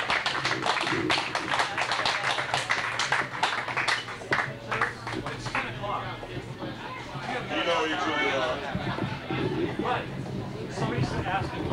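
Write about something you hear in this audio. A bass guitar plays a low line underneath.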